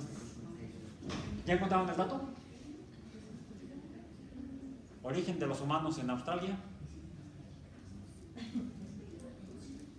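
A middle-aged man speaks calmly in an echoing room, pausing between phrases.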